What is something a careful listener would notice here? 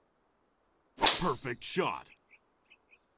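A golf club strikes a ball with a sharp whack.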